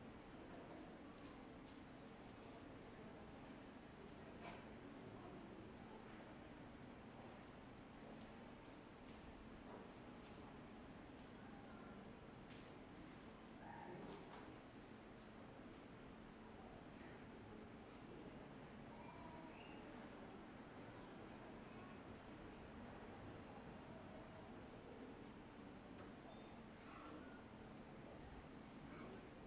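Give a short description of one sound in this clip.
A woman speaks quietly nearby in a softly echoing room.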